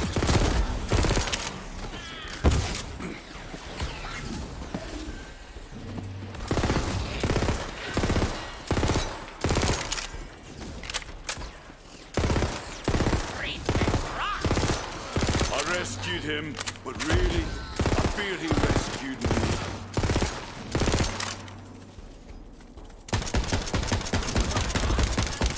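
A gun fires in rapid bursts of shots.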